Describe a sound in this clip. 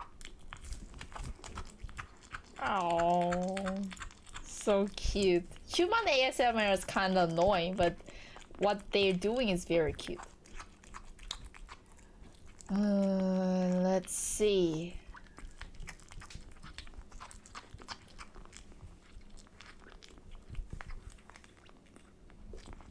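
A kitten chews and laps wet food.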